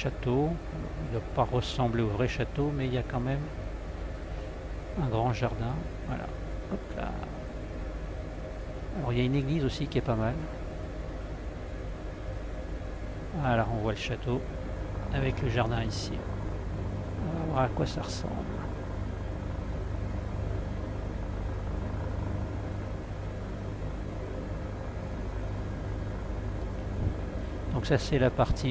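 A helicopter engine and rotor drone steadily throughout.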